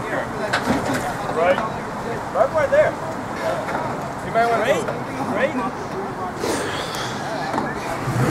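A truck engine rumbles and strains at low speed.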